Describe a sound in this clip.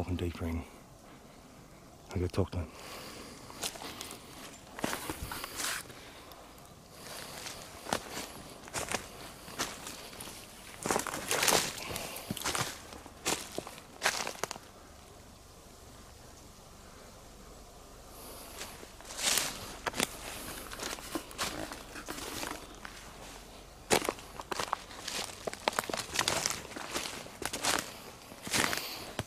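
Footsteps crunch on twigs and leaf litter.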